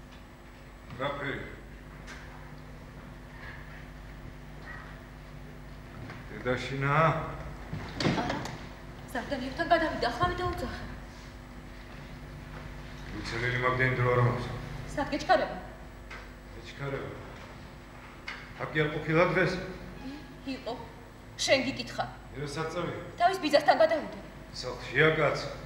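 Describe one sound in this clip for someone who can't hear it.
A man speaks theatrically in a large echoing hall.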